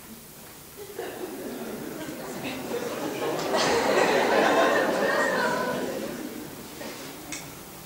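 A lone performer sings in a large echoing hall.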